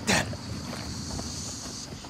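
An animal's paws patter across sand.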